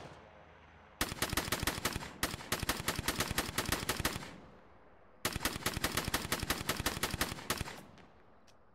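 A rifle fires rapid bursts of automatic gunfire.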